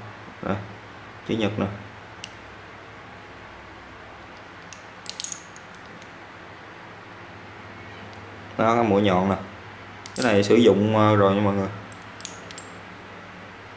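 Metal parts of a hand tool click and clink.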